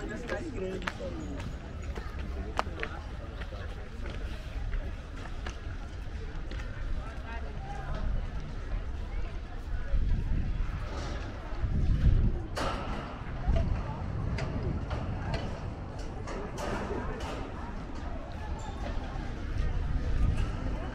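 Footsteps tap on paving stones outdoors.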